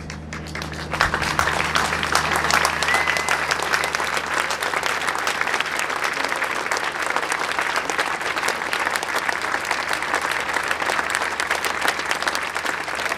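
A large crowd claps steadily outdoors.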